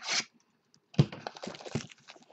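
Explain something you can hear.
A hand knocks against cardboard boxes.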